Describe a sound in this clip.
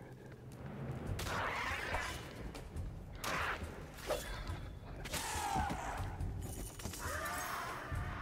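Swords swish and clash in a fast fight.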